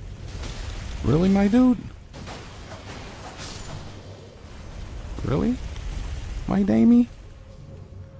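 A sword strikes with a loud metallic clang.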